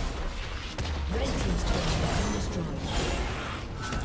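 A stone tower collapses with a heavy blast.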